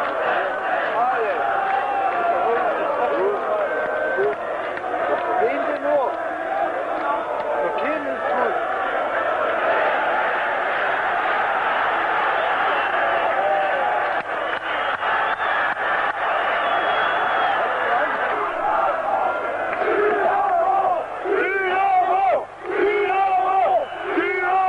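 A large crowd of fans chants and roars loudly all around.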